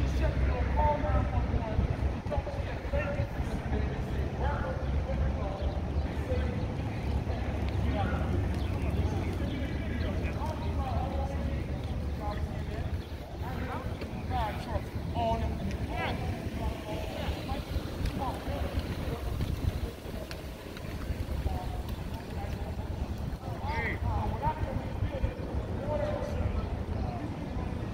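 A crowd of protesters chants and shouts outdoors at a distance.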